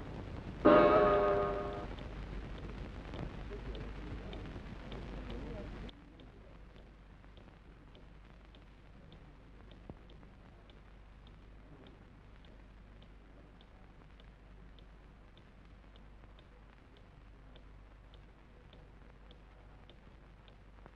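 A clock ticks steadily.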